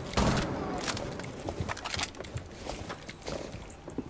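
A gun's magazine is swapped with a metallic clatter.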